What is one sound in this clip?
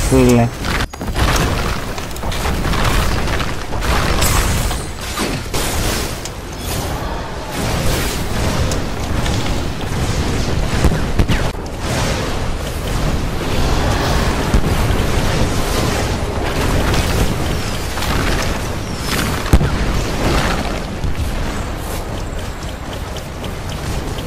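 Magic blasts and shots crackle and boom in quick bursts.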